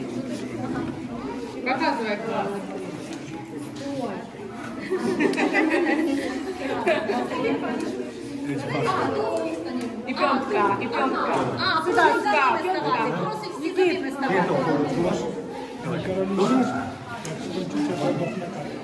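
A man talks cheerfully close by.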